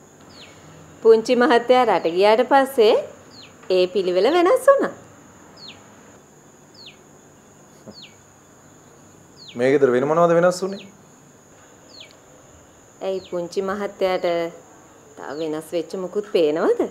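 A woman speaks calmly at close range.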